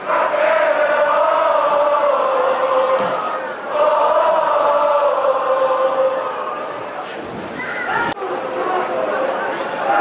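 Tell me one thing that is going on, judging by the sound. A large crowd of young men chants and sings together loudly in an open stadium.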